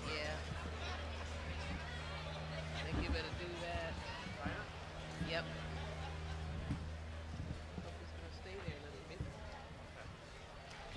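A jazz band plays, heard from a distance.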